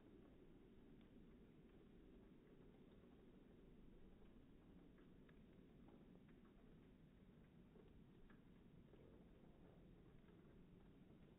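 Wind blows steadily outdoors, rumbling across the microphone.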